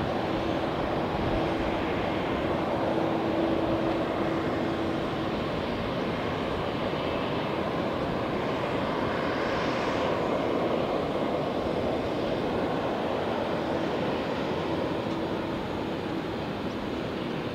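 A jet airliner's engines roar steadily as the plane taxis past.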